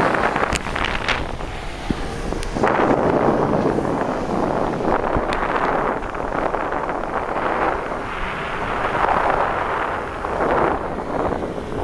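Strong wind rushes and buffets loudly past a microphone.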